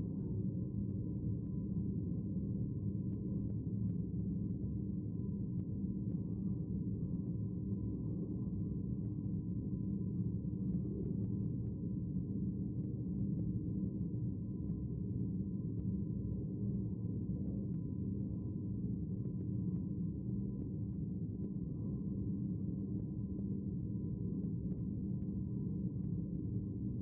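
People murmur softly in a large hall.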